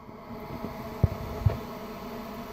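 A fingertip taps twice on a plastic cap.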